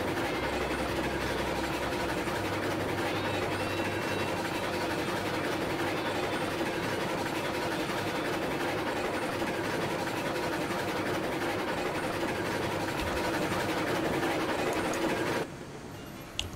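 A train rumbles steadily along its tracks.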